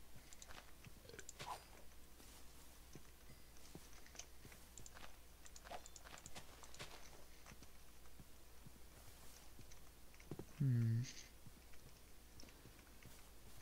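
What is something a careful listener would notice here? Footsteps crunch softly through grass.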